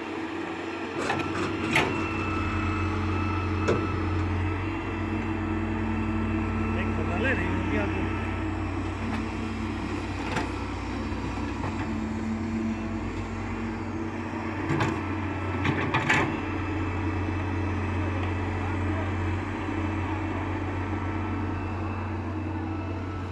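A diesel excavator engine rumbles steadily and revs under load.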